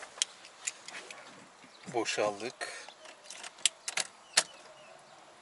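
A car key clicks in the ignition.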